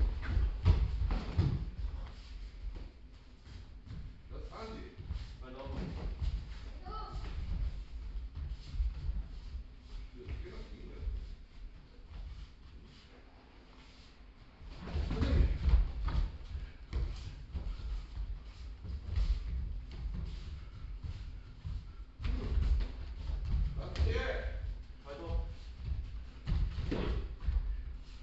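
Bare feet thump and shuffle on a padded mat.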